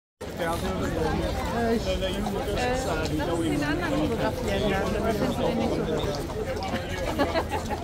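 Horse hooves clop on pavement.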